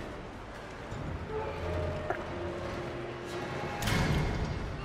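A heavy metal valve wheel creaks and grinds as it turns.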